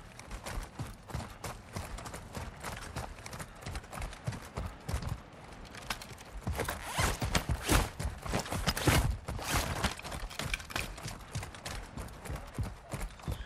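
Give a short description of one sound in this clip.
Footsteps thud quickly on gravel and concrete as someone runs.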